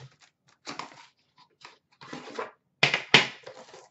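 A metal tin clatters as it is set down.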